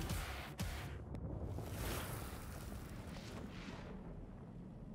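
A heavy blade whooshes through the air.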